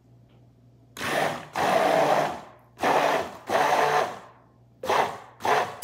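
Liquid pours into a bowl.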